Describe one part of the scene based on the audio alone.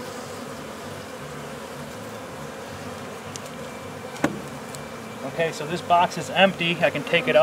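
Bees buzz steadily in a low drone.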